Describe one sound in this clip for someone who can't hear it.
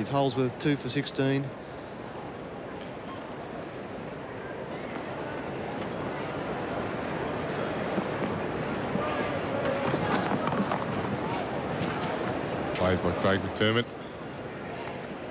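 A large crowd murmurs in an open stadium, swelling gradually.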